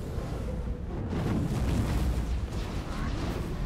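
A fireball bursts with a roar.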